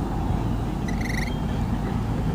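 A bird gives a short, harsh call nearby.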